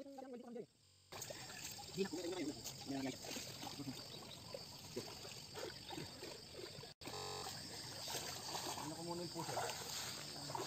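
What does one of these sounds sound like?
Water sloshes and splashes as a man wades through it.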